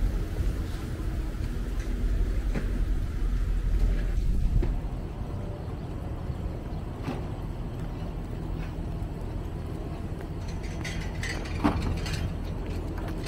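Rain patters steadily on wet pavement outdoors.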